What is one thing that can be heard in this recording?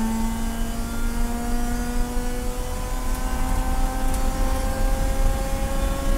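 A race car engine roars loudly from inside the cabin, its pitch slowly rising as it speeds up.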